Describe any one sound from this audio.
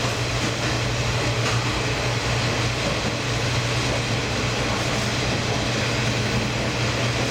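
Wheels rattle and clatter on the rails.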